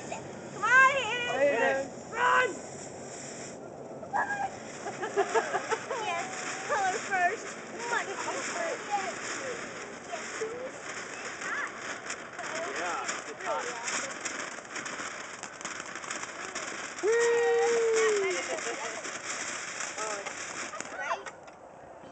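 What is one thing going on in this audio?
A firework fountain hisses and crackles steadily.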